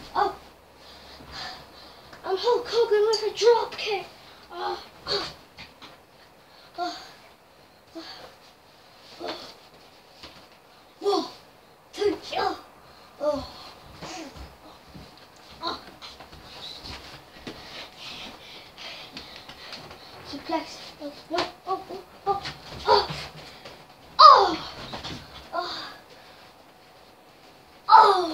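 A young boy talks and shouts playfully close by.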